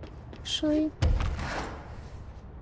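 A heavy thud sounds as someone lands from a jump.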